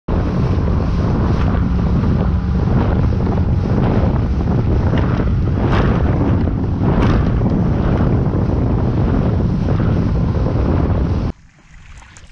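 Water splashes and sprays against a fast-moving boat.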